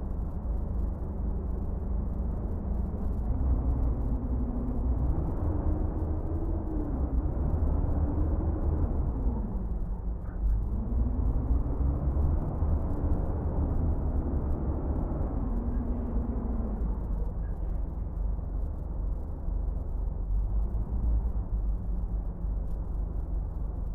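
A truck engine rumbles steadily and rises and falls in pitch as it drives.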